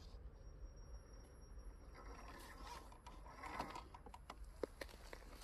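A small electric motor whines as a toy truck crawls over rock.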